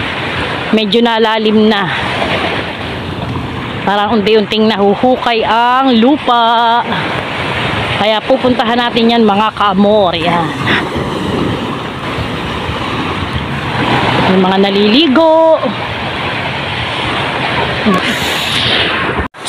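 Small waves wash onto a beach with a steady rushing sound.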